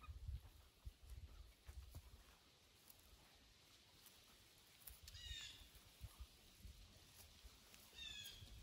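Hands dig and rustle through loose soil.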